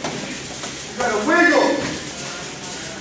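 A man shouts loudly nearby in a large echoing room.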